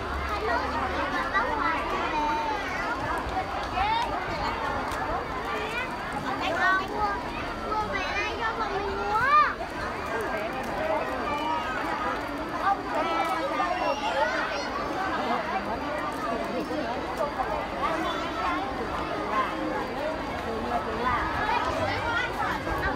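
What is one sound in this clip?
Children shout and call out now and then.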